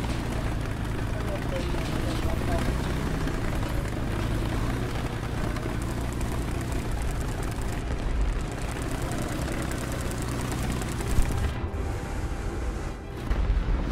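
A tank engine rumbles and its tracks clatter as it drives.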